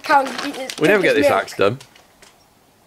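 A young boy speaks excitedly and laughs close by.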